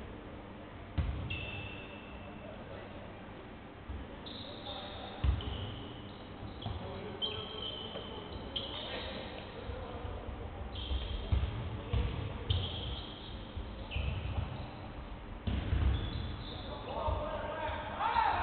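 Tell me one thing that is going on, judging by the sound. A basketball thuds repeatedly as it is dribbled on the court.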